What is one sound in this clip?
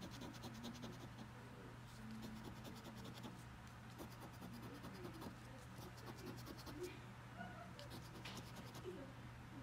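A coin scrapes across a scratch card in short, rasping bursts.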